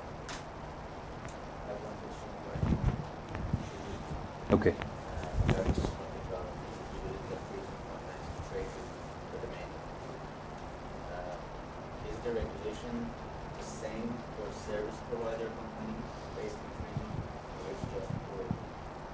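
A man speaks to a room, heard faintly from a distance with some echo.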